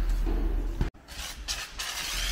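A pressure washer sprays a jet of water with a steady hiss.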